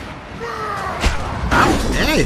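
A heavy body crashes down onto a metal grating.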